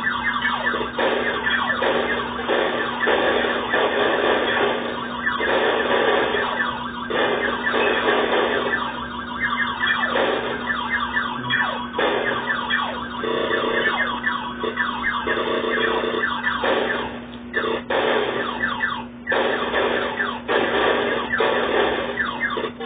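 Explosions burst as rocks break apart in an arcade game.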